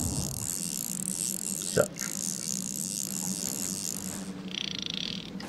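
Water splashes and swirls steadily close by.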